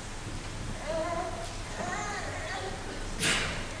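A man chants softly in a large echoing hall.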